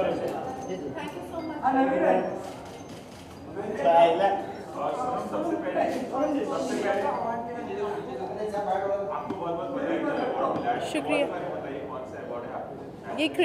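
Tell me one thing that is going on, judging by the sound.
A young woman speaks calmly into microphones close by.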